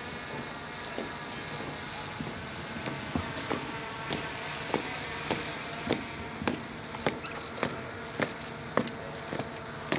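Soldiers' boots stamp in step on paving as they march.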